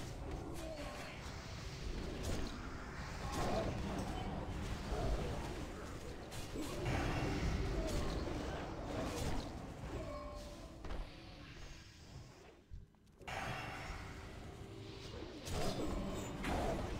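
Game spells crackle and whoosh.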